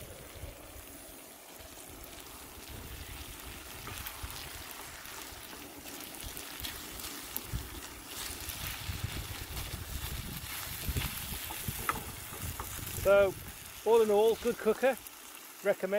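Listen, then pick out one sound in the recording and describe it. A wooden spatula scrapes and stirs food in a pan.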